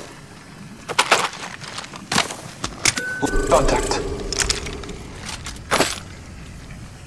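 Short clicks and chimes sound as items are picked up.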